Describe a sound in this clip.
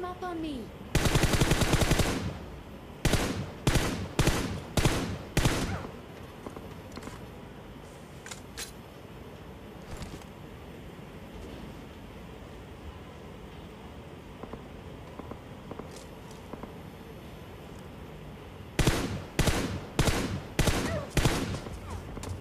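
Rifle shots fire in loud, quick bursts.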